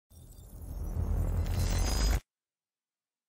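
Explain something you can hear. Glass shatters and rushes outward.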